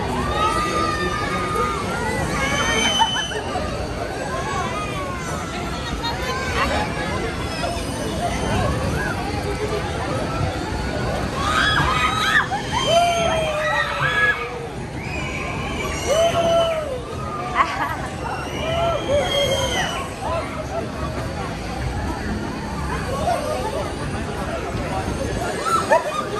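A fairground ride's machinery rumbles steadily outdoors.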